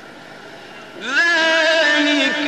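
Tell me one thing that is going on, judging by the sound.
A man chants loudly in a long, melodic voice through a microphone.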